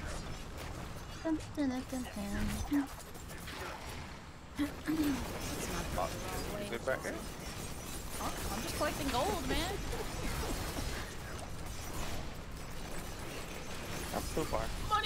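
Spell blasts and hits crackle and boom in a fast fight.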